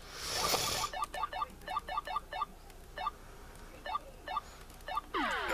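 A video game plays short chirping blips in quick bursts.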